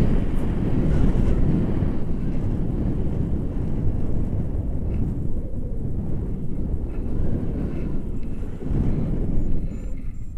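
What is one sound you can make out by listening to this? Strong wind rushes and buffets loudly against the microphone.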